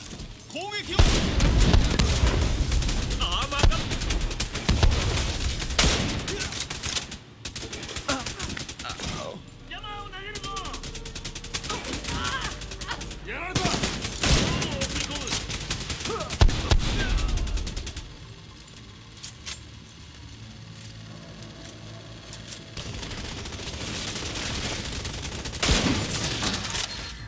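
Rifle shots crack loudly and echo, again and again.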